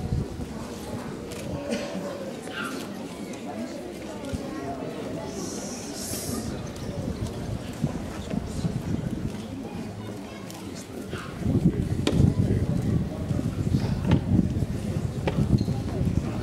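Footsteps shuffle and tap on cobblestones.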